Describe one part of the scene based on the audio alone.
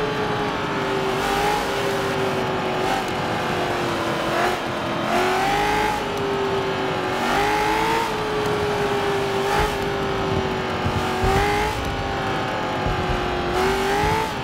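A race car engine drones steadily, its pitch rising and dipping as it shifts.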